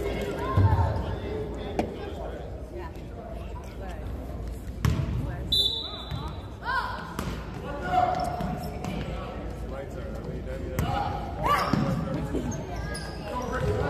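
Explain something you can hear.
Voices of children and adults call out in a large echoing gym.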